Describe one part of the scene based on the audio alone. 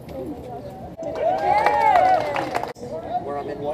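A crowd cheers and whistles outdoors.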